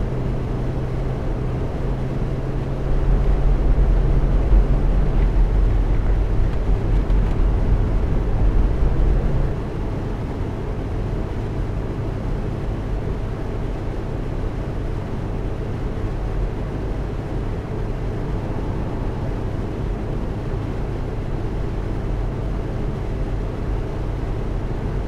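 A bus engine hums steadily as it drives along, louder for a few seconds.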